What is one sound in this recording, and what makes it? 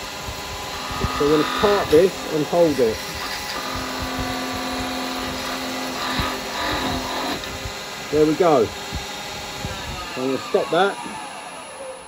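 A chisel scrapes and squeals against spinning wood.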